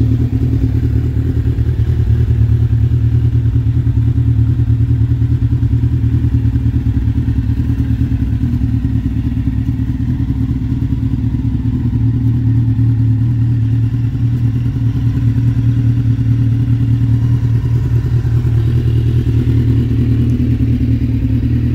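An inline-four sport motorcycle idles with a deep, throbbing exhaust note.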